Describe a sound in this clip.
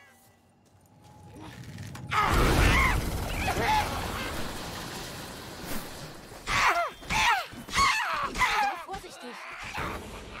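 Blades swing and strike in a fight.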